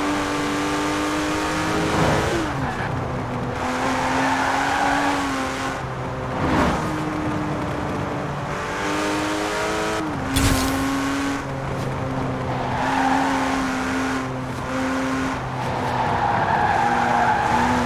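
A sports car engine roars at high speed, dropping in pitch with each gear shift.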